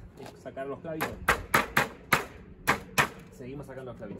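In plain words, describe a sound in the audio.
A hammer taps on wood.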